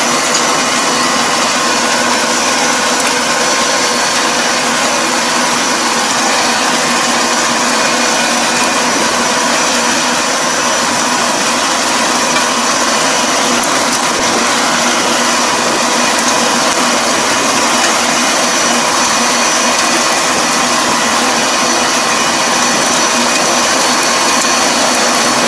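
Muddy water churns and splashes under a rotary tiller.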